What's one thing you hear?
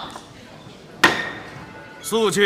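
A gavel bangs sharply on a wooden block.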